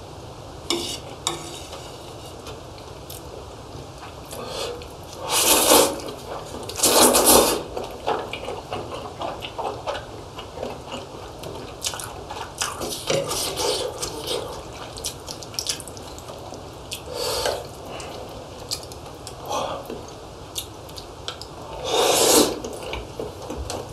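A young man slurps and chews food loudly, close to a microphone.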